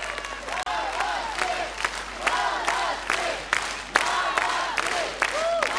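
A large crowd claps and cheers in a big hall.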